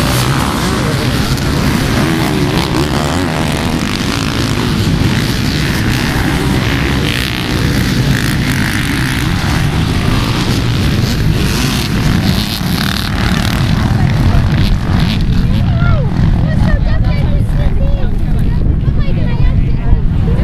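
Many dirt bike engines roar and rev together.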